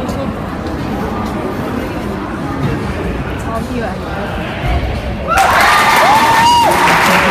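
A crowd of people murmurs and chatters in a large echoing hall.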